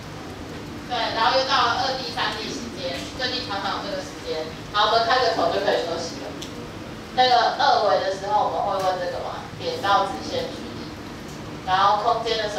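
A woman speaks clearly through a microphone, explaining.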